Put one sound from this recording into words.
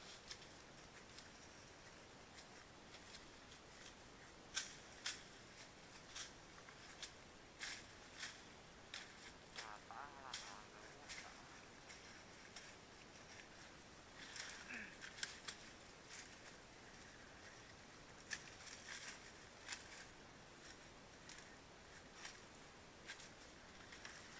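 Leaves and branches rustle as someone pushes through brush.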